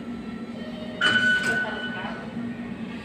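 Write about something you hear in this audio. A ticket gate beeps sharply as a card is tapped.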